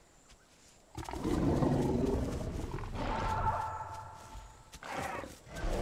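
A large dinosaur growls deeply.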